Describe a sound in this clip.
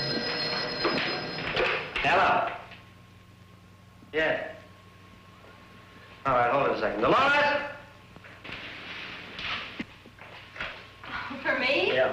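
A young man speaks into a telephone.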